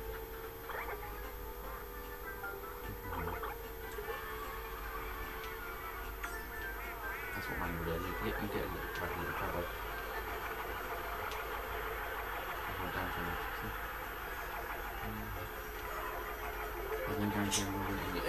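Upbeat game music plays through a television speaker.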